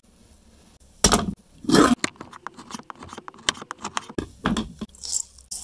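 A blade knocks on a wooden board.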